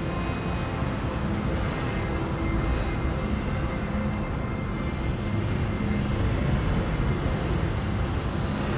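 A spacecraft engine roars steadily with a deep rumble.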